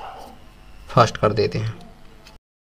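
Small plastic parts click and snap as they are handled.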